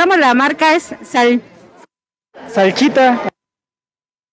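A woman speaks close into a microphone, asking questions.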